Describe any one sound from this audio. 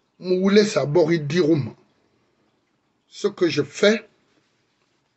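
A middle-aged man speaks earnestly and close to a microphone, pausing between phrases.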